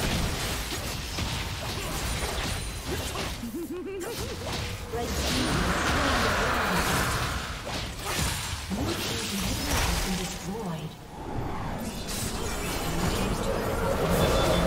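Game spells whoosh, crackle and boom during a fight.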